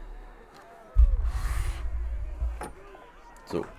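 A heavy wooden door is pushed open with a low rumble.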